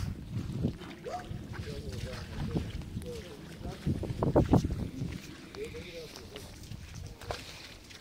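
An oar splashes and paddles through shallow water.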